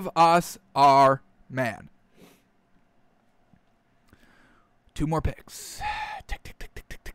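A man talks animatedly and close up into a microphone.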